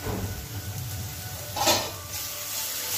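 A spatula scrapes and stirs food in a metal pan.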